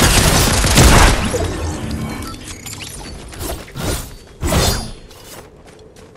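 A pickaxe swings and strikes with sharp whooshing hits.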